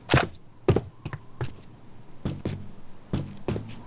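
Footsteps clang on a metal grating.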